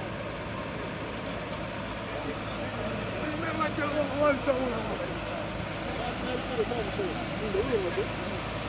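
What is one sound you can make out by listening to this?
A truck engine rumbles steadily as it rolls slowly forward.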